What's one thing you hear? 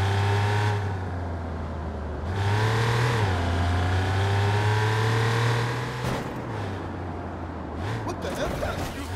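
A car engine roars and revs as it speeds along.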